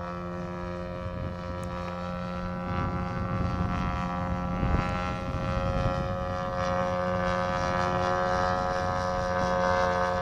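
Wind rumbles across the microphone.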